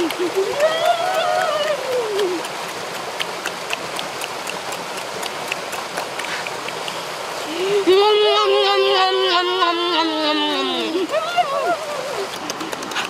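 Young boys cry out loudly with long, drawn-out exclamations.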